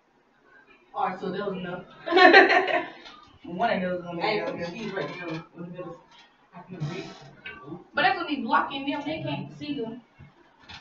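Two young women talk with animation close by.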